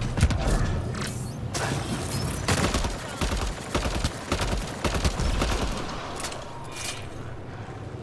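Energy gunshots fire in rapid bursts.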